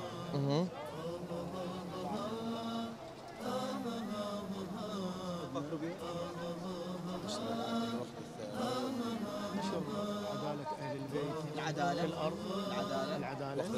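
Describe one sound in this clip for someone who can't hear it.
A man speaks calmly into a microphone outdoors.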